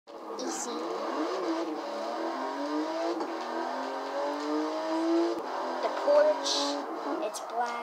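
A car engine revs higher and higher as the car speeds up.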